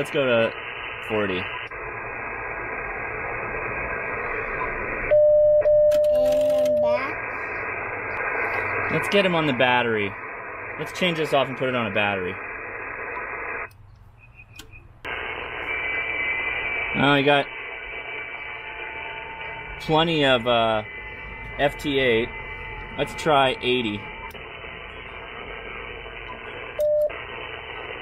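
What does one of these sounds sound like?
A radio receiver hisses with static from its loudspeaker.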